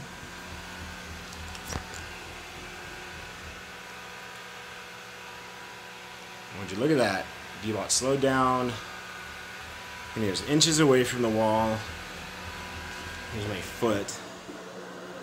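A robot vacuum hums steadily as it rolls across the floor.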